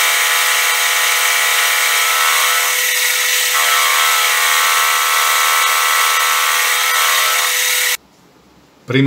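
A lathe motor whines steadily as the spindle spins.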